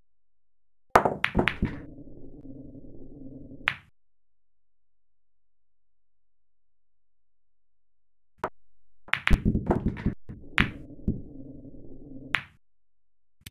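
Pool balls roll across a table.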